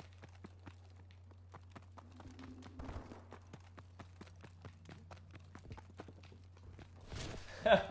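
Quick footsteps tap steadily on a hard floor.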